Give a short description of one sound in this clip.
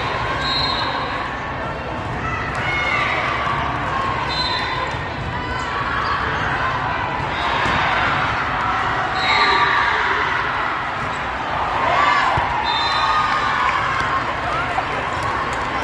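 A crowd of spectators cheers and chatters in a large echoing hall.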